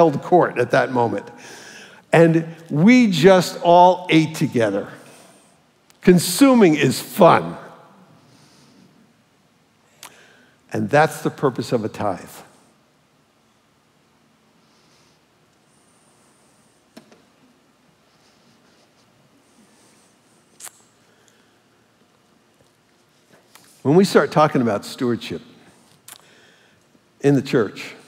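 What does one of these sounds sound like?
An older man speaks with animation through a microphone in a large echoing hall.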